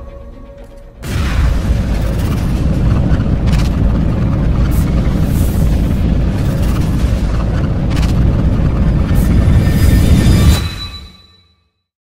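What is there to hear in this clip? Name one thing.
A loud rushing whoosh roars steadily, then cuts off.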